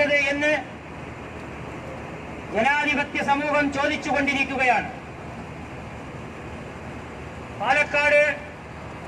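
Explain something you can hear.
A crowd murmurs outdoors in the background.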